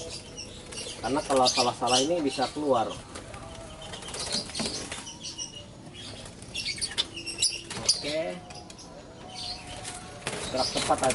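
A cloth rubs and scrapes against a wooden cage.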